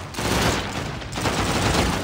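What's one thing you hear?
A rifle fires a quick burst of gunshots.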